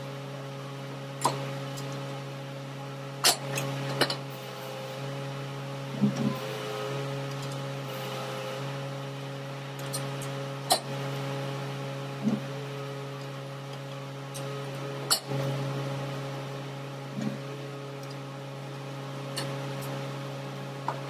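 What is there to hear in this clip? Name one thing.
A diesel engine idles with a steady low hum.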